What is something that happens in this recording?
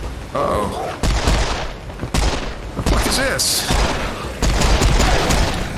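A pistol fires several loud shots in quick succession.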